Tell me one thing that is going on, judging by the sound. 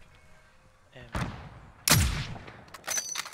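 A sniper rifle fires with loud booming shots.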